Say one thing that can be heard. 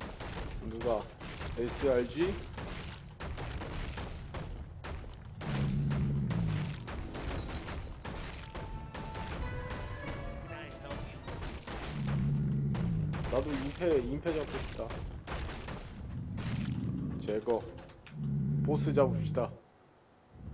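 Weapons clash and strike in quick succession during a fight.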